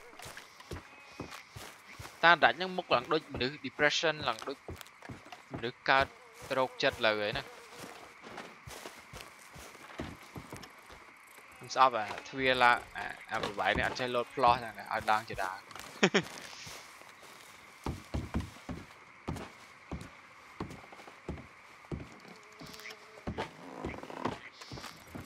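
Footsteps tread steadily over grass and then thump on wooden boards.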